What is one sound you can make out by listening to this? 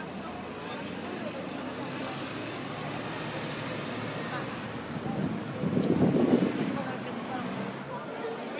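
A bus engine rumbles as it drives past.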